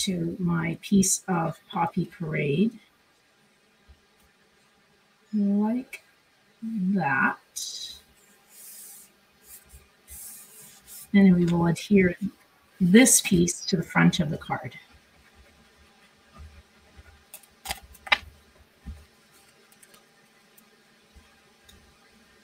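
Paper rustles and slides as hands handle it.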